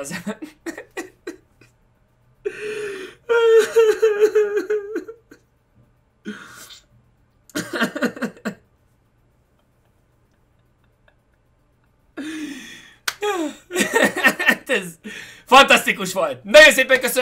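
A young man laughs loudly close to a microphone.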